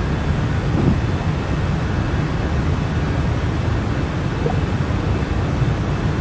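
An airliner's engines drone with a steady low roar.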